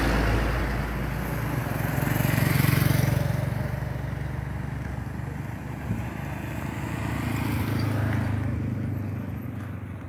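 Motorcycles ride past with a buzzing engine.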